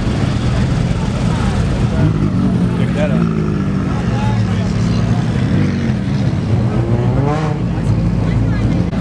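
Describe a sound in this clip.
A sports car engine revs loudly and rumbles as the car drives off.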